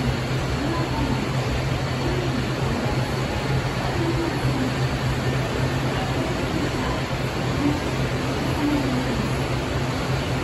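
A subway train rumbles into an underground station, growing louder as it arrives.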